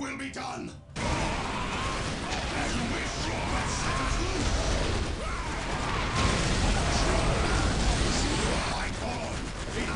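Guns fire rapidly in a noisy battle.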